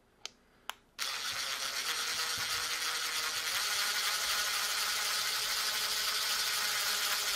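A cordless drill whirs steadily, driving a screw.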